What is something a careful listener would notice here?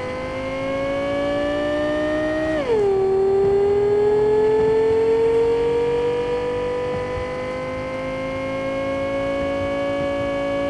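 A car engine hums steadily, rising in pitch, then drops sharply as the gear shifts and slowly climbs again.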